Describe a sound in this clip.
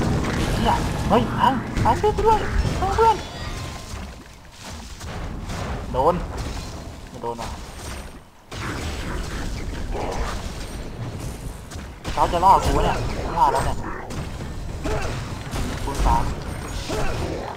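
Magic blasts and weapon clashes burst out in a busy game battle.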